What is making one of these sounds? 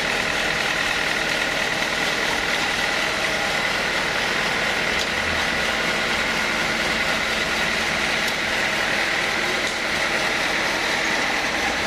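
A band saw blade cuts through a log with a harsh rasp.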